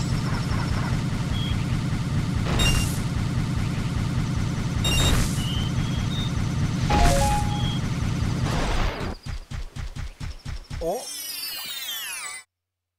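Lively video game music plays.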